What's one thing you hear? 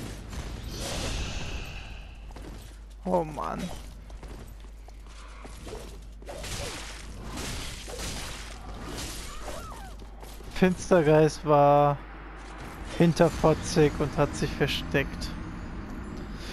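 Blades swing and clash with sharp metallic hits.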